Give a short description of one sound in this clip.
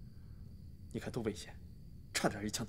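A young man speaks teasingly.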